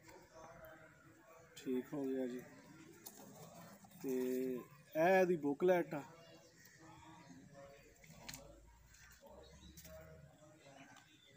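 Paper crinkles in a man's hands.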